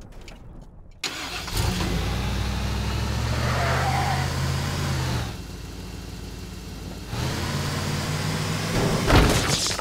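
A truck engine hums and revs as the truck drives.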